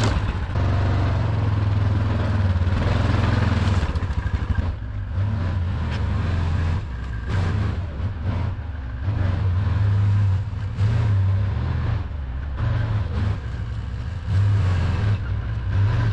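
A plough blade scrapes and pushes snow.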